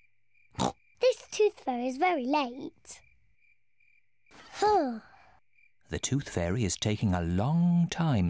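A young girl's cartoon voice speaks with animation.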